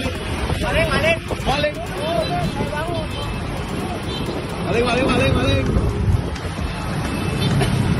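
Motorcycle engines hum and rumble in traffic nearby.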